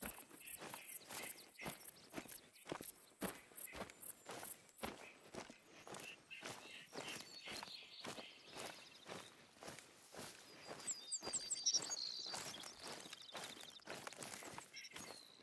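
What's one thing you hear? Footsteps rustle through low brush and grass at a steady walking pace.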